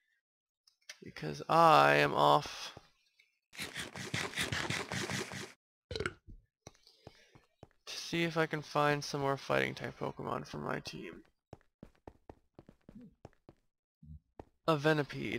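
Footsteps tap on stone.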